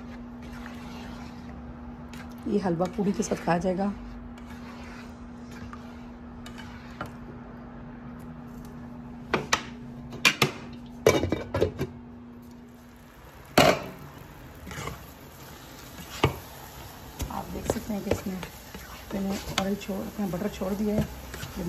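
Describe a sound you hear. A spatula scrapes and stirs in a metal pot.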